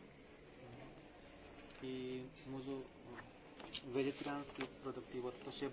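Menu pages rustle and slide on a table.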